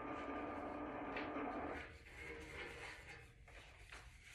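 Sheets of paper rustle and flap.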